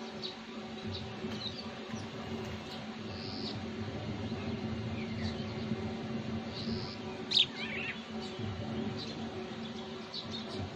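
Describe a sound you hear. Small birds chirp and tweet outdoors.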